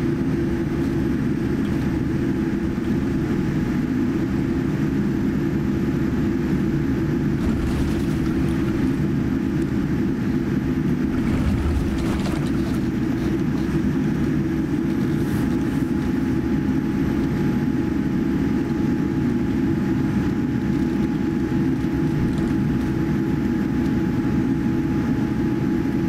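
A jet airliner's engines hum and rumble steadily while it taxis, heard from inside the cabin.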